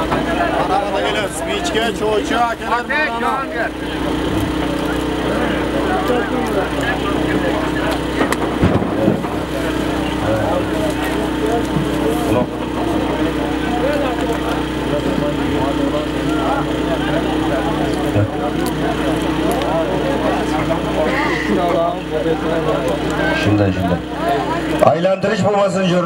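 A crowd of men shouts and calls out across open ground.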